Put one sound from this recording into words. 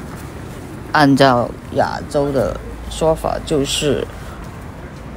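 A young person talks close to a microphone, in short bursts.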